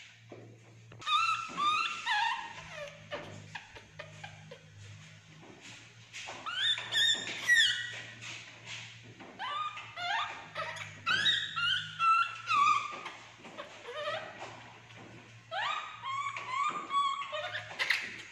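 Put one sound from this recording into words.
A baby monkey squeaks and chirps in high, falling cries.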